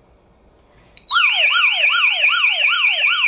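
An electronic alarm siren wails loudly, rising and falling rapidly.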